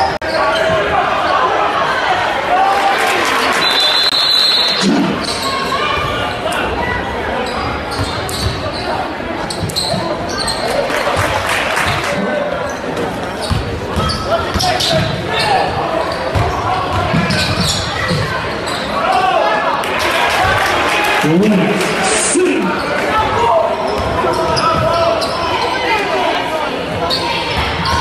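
A crowd of spectators chatters and cheers in a large echoing gym.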